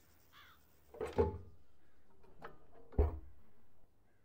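Metal clanks as a hatch opens and shuts.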